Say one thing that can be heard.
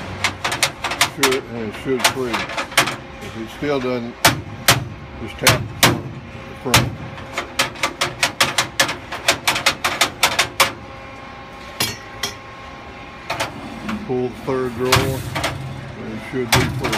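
Metal parts click and clatter against a cabinet frame.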